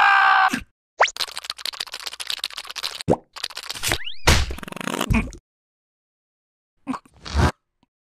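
A cartoon creature babbles and squeals in a high, squeaky voice.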